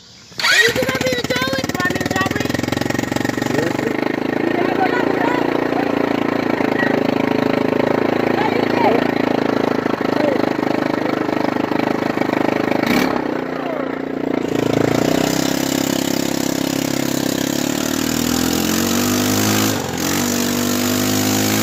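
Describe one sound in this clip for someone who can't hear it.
A motorbike engine runs close by, its pitch rising and falling.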